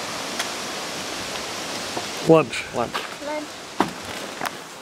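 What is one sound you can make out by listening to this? A man speaks calmly up close outdoors.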